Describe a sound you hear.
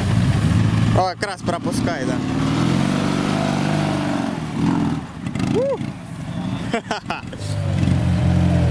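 A motorcycle engine roars and revs.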